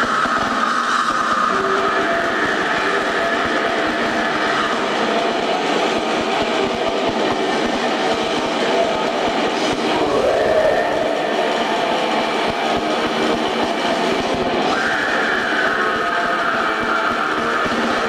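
Drums pound fast and hard.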